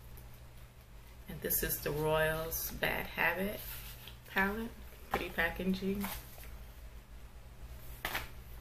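A cardboard palette taps and rustles in a woman's hands.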